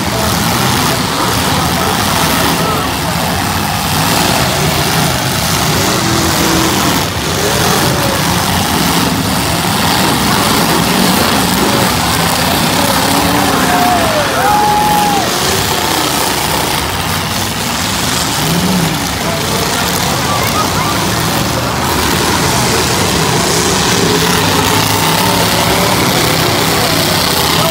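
Car engines roar and rev loudly in an outdoor arena.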